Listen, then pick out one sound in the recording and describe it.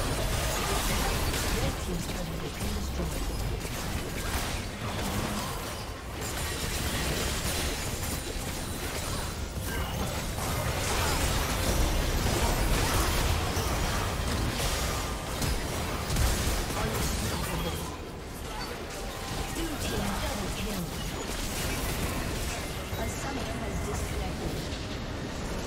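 Game spells and attacks crackle and blast in quick succession.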